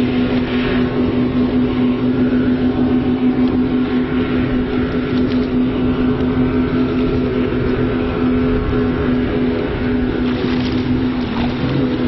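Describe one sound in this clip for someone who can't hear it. Waves splash and churn on open water.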